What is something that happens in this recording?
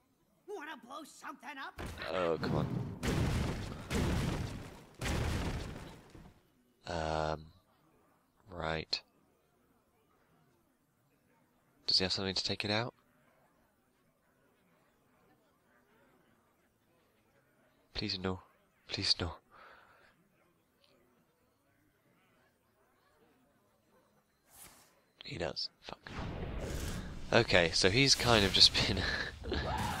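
A card game plays magical whooshes and impact effects.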